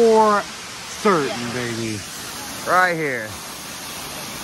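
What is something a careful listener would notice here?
A woman exclaims excitedly close by.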